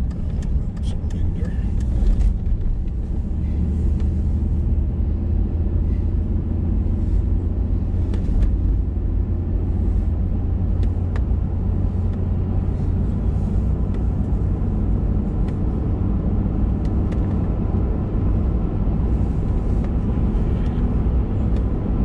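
Tyres roll and rumble on a paved road.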